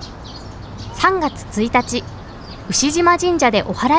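A small bird chirps in high, quick calls.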